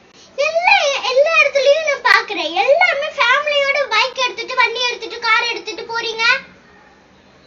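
A young girl speaks forcefully and with animation, close by.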